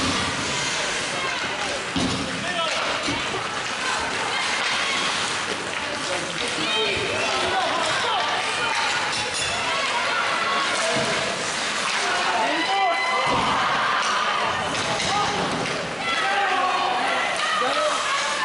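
Children shout and call out in a large echoing rink.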